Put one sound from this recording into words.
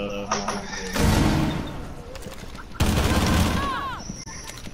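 A gun fires loud, rapid bursts of shots.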